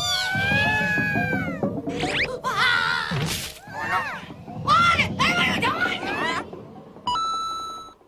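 Cartoon birds squawk and chatter excitedly.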